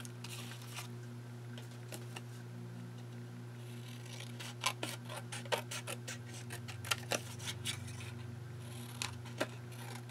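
Stiff photograph paper crinkles and taps as hands handle it.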